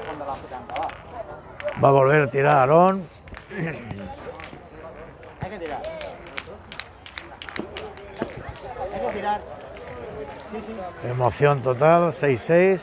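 Young men talk among themselves nearby.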